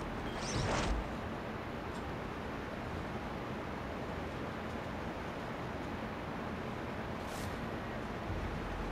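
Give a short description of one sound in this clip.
Waves slosh against a ship's hull.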